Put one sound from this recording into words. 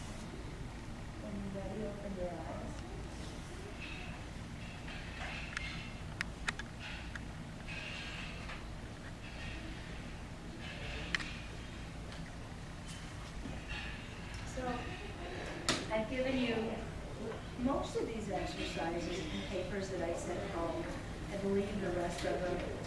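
A woman speaks at length to an audience, heard from a distance in a room.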